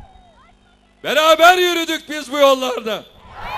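A man speaks forcefully through loudspeakers.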